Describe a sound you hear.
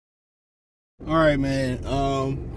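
A young man talks to the listener up close, with animation.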